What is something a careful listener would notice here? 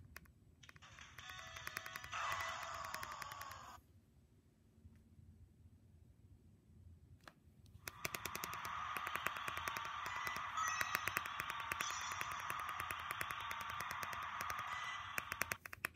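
Electronic game music plays from a small speaker.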